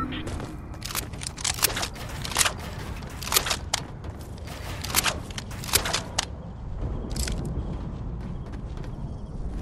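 Wooden panels snap into place with sharp clicks.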